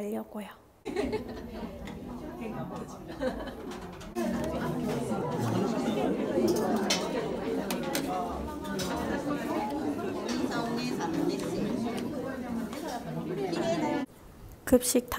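Several people chatter in a busy, echoing room.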